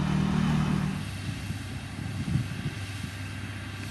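A grader's diesel engine idles and rumbles.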